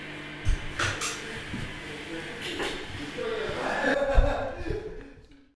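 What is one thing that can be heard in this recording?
A band plays music in a small room.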